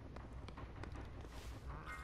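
A wooden chest creaks open and items rattle inside.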